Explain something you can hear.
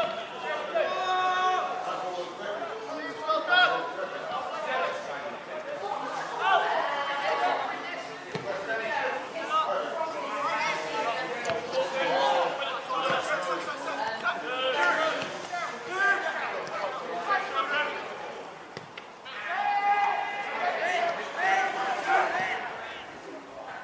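Men shout and call to each other across an open field.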